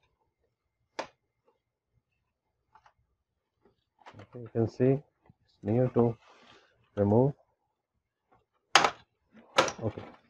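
Plastic parts click and knock as a printer is handled.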